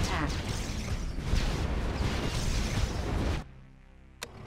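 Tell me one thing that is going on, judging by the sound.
Explosions and gunfire rumble loudly in a battle.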